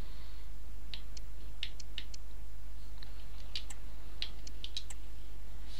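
Soft menu clicks tick several times.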